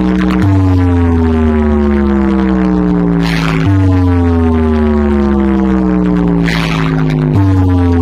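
A large stacked DJ speaker wall plays loud electronic music with heavy, booming bass.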